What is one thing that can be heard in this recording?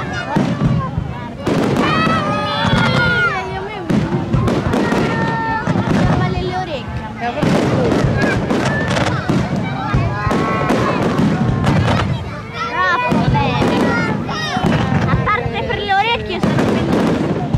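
Fireworks burst and crackle with sharp bangs.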